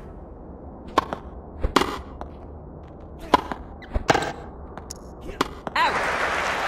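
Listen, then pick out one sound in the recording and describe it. A tennis ball is struck with a racket, with sharp pops.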